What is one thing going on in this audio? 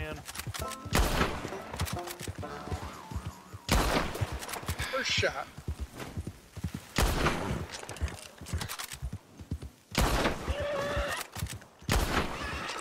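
Rifle shots ring out loudly, one every few seconds.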